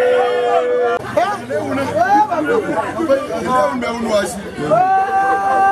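Men and women in a crowd shout and ululate excitedly.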